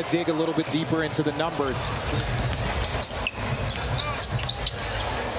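A large indoor crowd murmurs and cheers.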